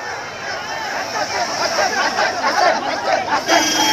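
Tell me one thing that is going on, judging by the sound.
A man cheers loudly close by.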